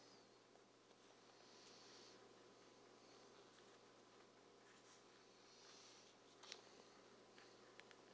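Fingers rub and press on a thin sheet.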